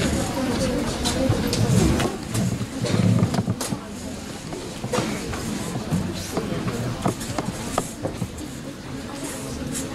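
Guitar strings are plucked softly as players tune up.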